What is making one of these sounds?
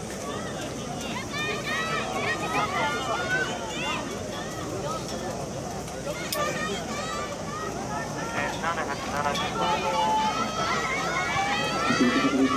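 A large crowd chatters and calls out in the open air.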